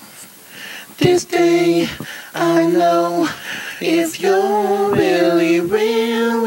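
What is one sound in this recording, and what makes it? A man sings loudly and close by, holding long notes.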